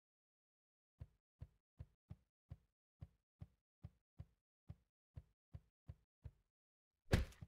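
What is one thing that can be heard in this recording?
Soft cartoon footsteps thud at a quick, steady pace.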